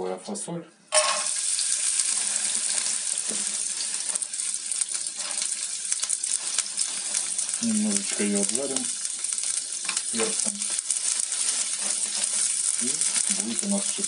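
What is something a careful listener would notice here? Green beans sizzle in hot oil in a frying pan.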